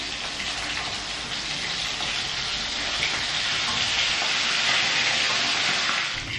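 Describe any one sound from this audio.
A metal spatula scrapes against a wok.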